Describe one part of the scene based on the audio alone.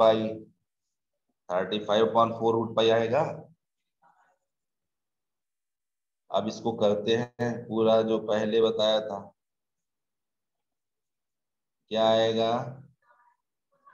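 A man explains calmly over an online call.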